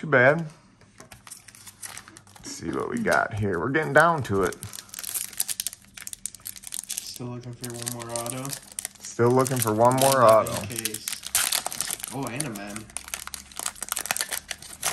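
Foil wrapping crinkles and tears as a pack is ripped open.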